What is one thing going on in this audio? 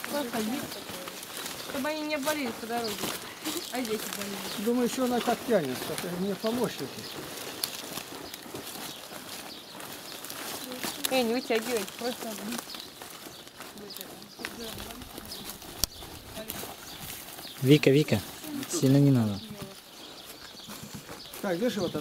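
Children talk and call out close by.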